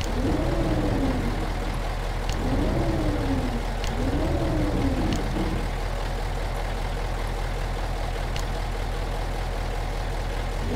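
A truck engine idles with a low steady rumble.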